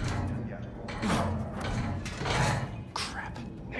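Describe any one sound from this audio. Metal bars rattle.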